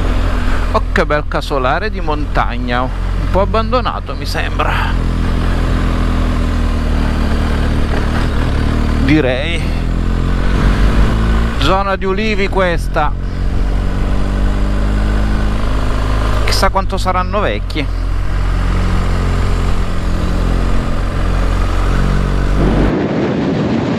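A motorcycle engine hums steadily while riding.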